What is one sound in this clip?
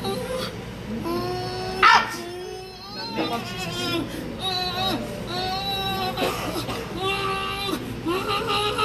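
A young woman wails and sobs loudly, close by.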